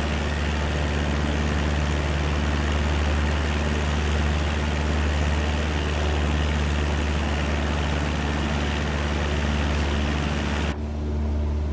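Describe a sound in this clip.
Wind rushes loudly past a small plane.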